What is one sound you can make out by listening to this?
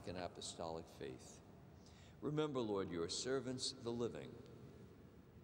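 An elderly man speaks and chants slowly into a microphone.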